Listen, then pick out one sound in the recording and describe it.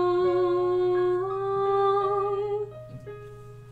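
A karaoke backing track with a sung melody plays, then stops.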